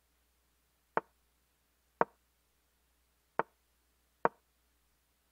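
Game pieces click sharply, one at a time.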